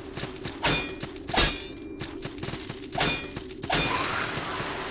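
A sword swings and strikes in quick, ringing slashes.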